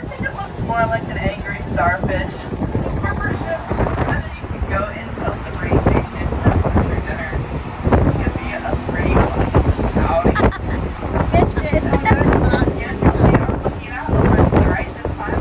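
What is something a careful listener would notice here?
Wind gusts outdoors and buffets against the microphone.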